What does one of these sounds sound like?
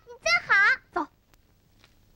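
A young boy calls out in a high voice.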